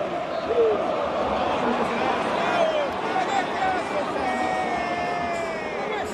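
A large stadium crowd roars and chants loudly all around.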